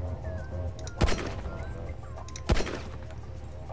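A pistol fires two sharp shots.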